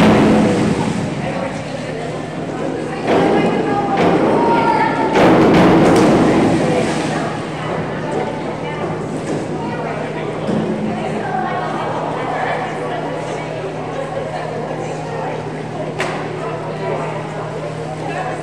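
Voices chatter and echo around a large indoor pool hall.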